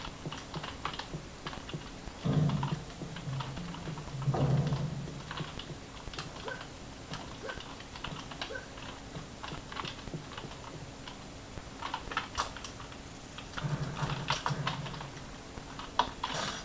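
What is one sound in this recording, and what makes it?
Keys on a keyboard click and clatter rapidly.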